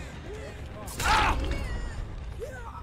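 A heavy blow lands with a sharp thud.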